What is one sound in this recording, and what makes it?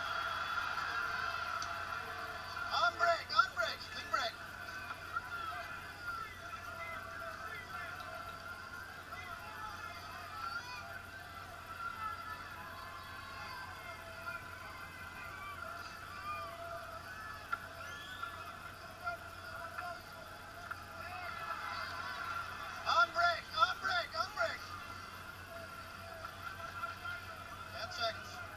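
A crowd cheers and roars through a loudspeaker, swelling in short bursts.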